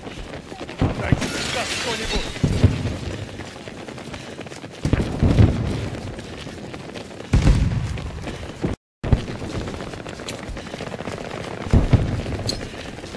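Gunfire from a video game bursts out now and then.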